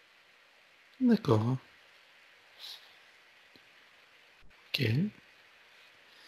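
An older man speaks softly in short phrases over an online call.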